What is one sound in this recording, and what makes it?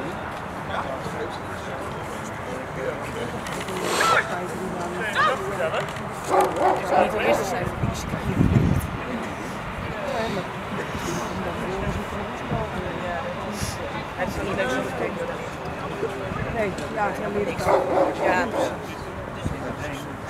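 A man gives loud commands to a dog outdoors.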